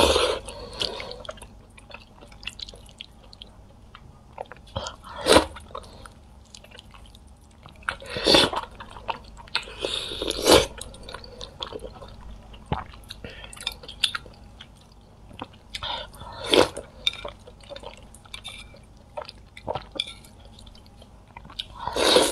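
A young woman chews and slurps food wetly, close to a microphone.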